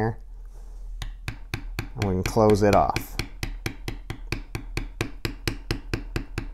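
A mallet taps rapidly and steadily on a metal stamping tool.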